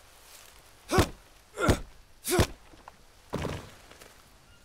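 Wooden poles knock into place with a few loud thuds.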